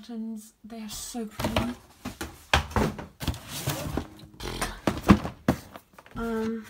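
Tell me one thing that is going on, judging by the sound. A cardboard box lid scrapes and rustles as it is opened.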